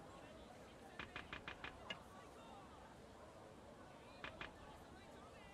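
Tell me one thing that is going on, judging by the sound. A game menu ticks softly as the selection moves.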